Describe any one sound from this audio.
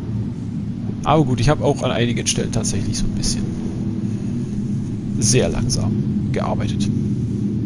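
A man speaks in bursts into a nearby microphone.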